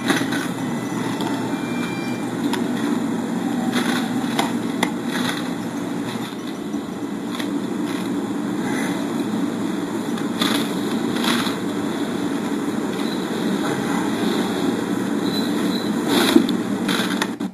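A man crunches and chews food up close.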